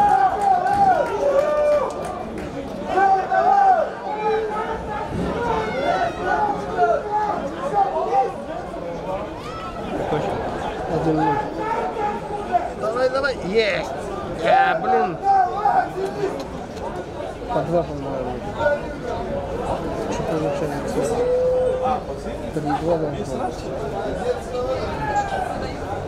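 Several young men talk and argue loudly outdoors.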